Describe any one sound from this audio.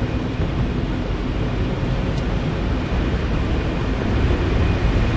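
Tyres roll and hiss over a slushy road.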